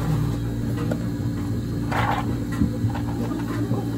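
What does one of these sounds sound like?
Fizzy soda pours and crackles over ice.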